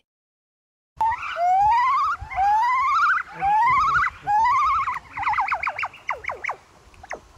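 A chimpanzee calls with rising hoots.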